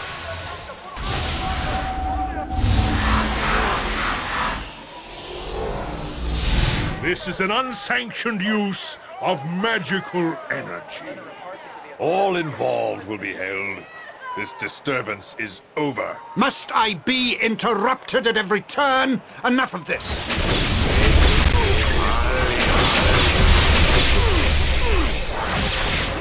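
A magical spell whooshes and crackles loudly.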